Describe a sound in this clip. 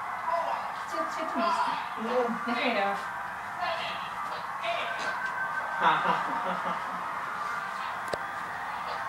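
Music plays from a television.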